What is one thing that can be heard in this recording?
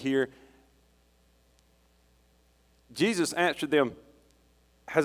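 A middle-aged man speaks slowly and deliberately through a microphone in a large room with a slight echo.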